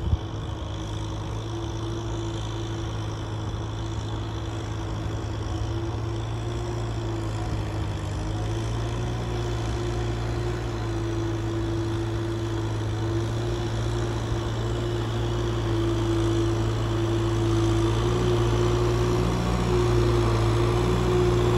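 A tractor engine rumbles steadily and grows louder as it approaches.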